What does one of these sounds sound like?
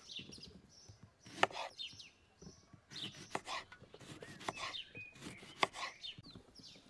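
A knife slices through a lemon and taps on a wooden board.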